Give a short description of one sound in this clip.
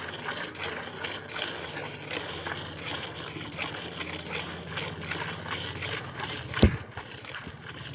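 Streams of milk spray rhythmically into a metal bucket.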